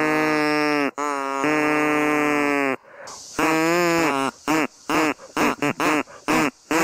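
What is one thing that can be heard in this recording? A man blows a reed whistle, making long, bending pitched notes and then a run of short chirps.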